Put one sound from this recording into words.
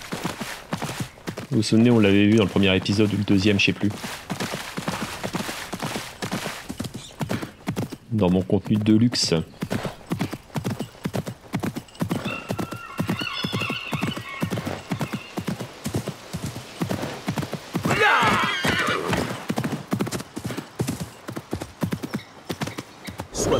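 A horse gallops with rapid, steady hoofbeats.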